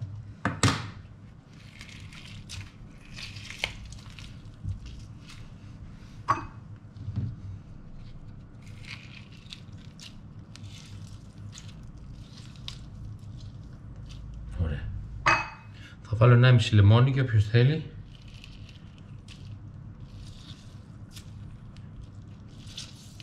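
Juice squeezes and drips from a lemon.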